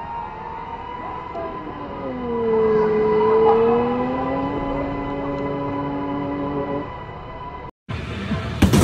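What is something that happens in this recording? A go-kart engine hums steadily, rising and falling in pitch.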